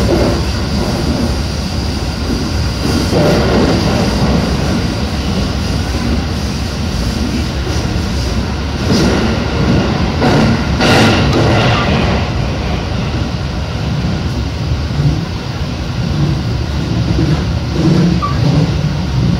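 An electric commuter train rumbles over rails through a tunnel.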